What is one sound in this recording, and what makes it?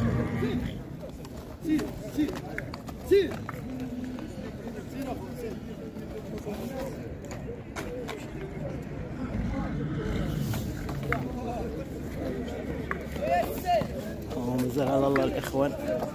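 A horse's hooves thud on dirt as it trots.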